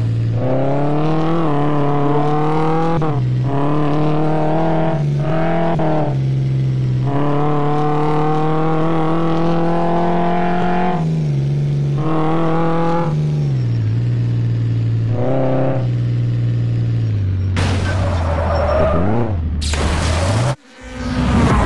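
A racing car engine roars at high speed, its pitch climbing and dropping sharply with each gear change.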